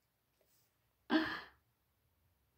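A woman gasps dramatically.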